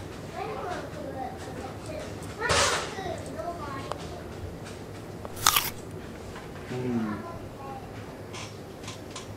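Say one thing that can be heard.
A young man talks nearby in a casual voice.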